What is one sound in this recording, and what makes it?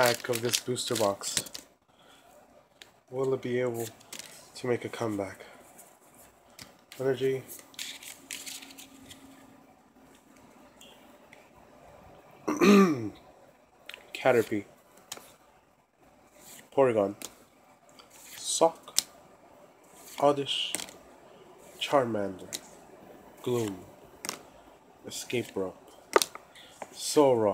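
Playing cards rustle and tap softly as they are handled.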